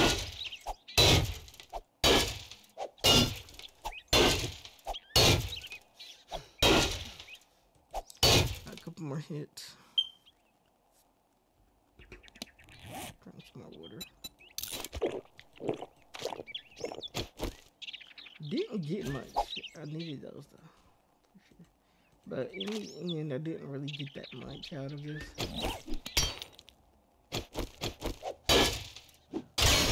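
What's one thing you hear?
An axe strikes a wooden crate with repeated heavy thuds.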